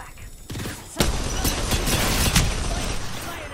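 A gun fires in sharp loud bursts.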